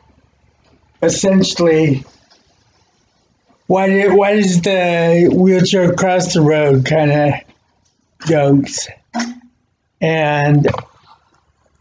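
A man talks calmly and close to a laptop microphone.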